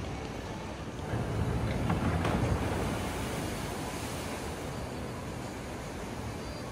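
A fountain splashes and gushes.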